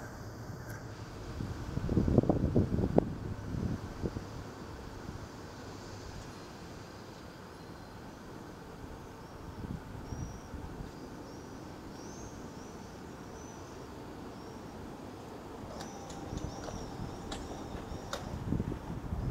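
An electric tram approaches in the distance.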